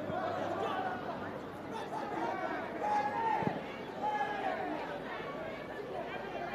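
A crowd murmurs and calls out in an open-air stadium.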